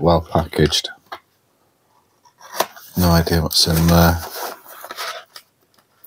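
A cardboard sleeve slides off a box.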